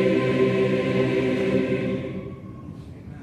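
A large congregation sings a hymn together in a big echoing hall, then stops.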